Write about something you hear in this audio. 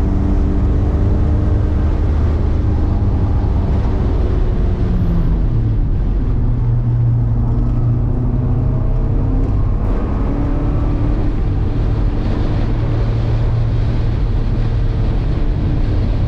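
A car engine roars loudly up close, its pitch rising and falling.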